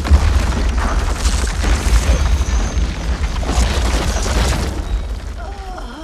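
Rocks and debris crash and scatter in a loud blast.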